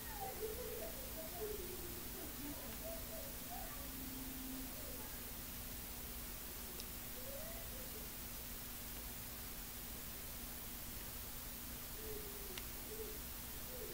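A young man speaks quietly and briefly close by.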